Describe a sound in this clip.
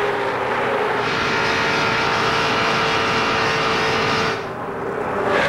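A race car engine whines steadily from close by.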